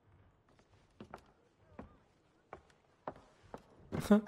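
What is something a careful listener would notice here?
A wooden box knocks and thumps as it is lifted.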